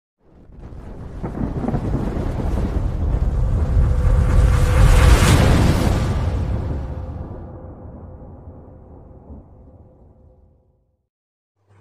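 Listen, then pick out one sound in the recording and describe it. A deep explosion swells, booms and slowly rumbles away.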